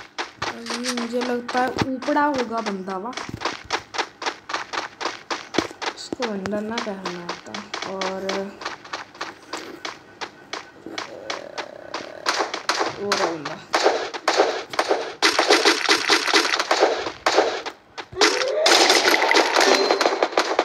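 Rapid footsteps run over hard ground.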